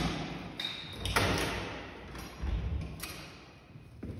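Heavy wooden doors creak open.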